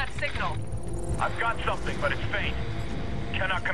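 A man speaks quickly over a radio.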